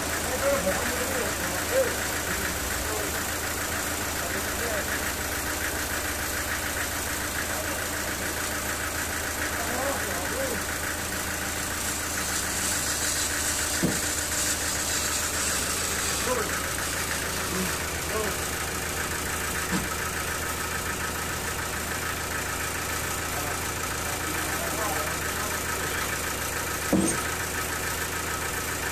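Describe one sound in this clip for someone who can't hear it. A band saw motor hums and whines steadily.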